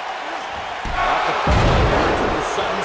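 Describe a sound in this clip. A body slams heavily onto a wrestling ring mat with a deep thud.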